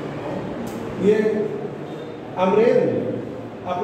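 A man speaks calmly in a lecturing tone.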